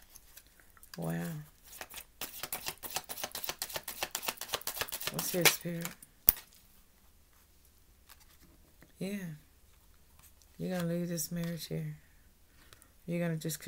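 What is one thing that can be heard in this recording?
A woman speaks calmly and close by, in short phrases.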